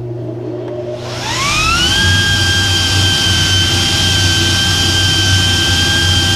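Air rushes loudly through a large duct.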